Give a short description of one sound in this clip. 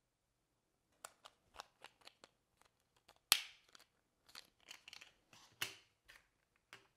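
Plastic packaging crinkles and clicks as hands unwrap it.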